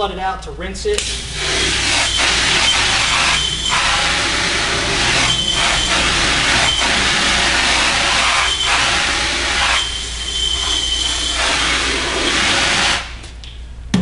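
A pressure washer sprays water with a loud steady hiss.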